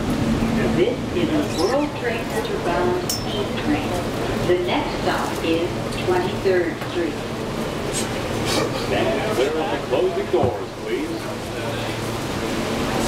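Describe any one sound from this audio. Adult men and women talk nearby in a crowd.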